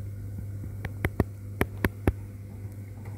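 A metal pan knocks and clicks against a stovetop.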